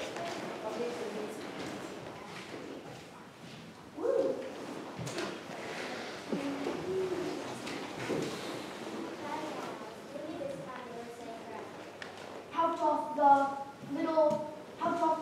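Children chatter and murmur in a large echoing hall.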